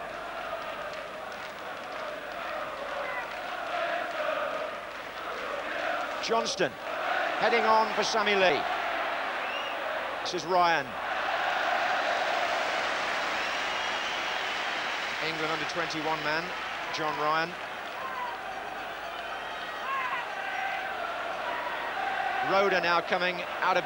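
A large stadium crowd roars and chants in the distance.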